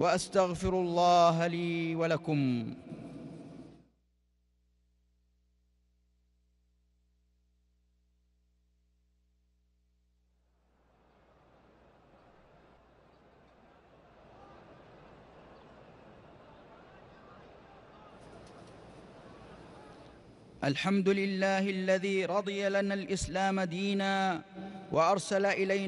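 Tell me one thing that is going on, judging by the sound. A man chants a prayer through loudspeakers in a large echoing hall.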